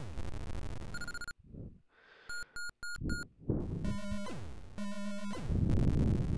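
A video game beeps in short, high electronic tones.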